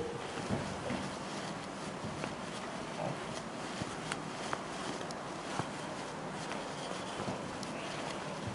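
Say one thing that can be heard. A cloth duster rubs across a board, wiping it.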